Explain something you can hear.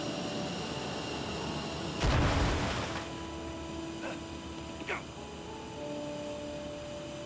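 A small hover vehicle hums steadily.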